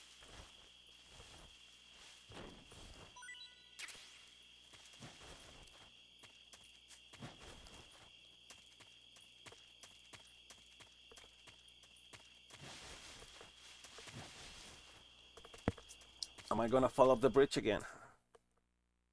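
Grass rustles as someone crawls through it.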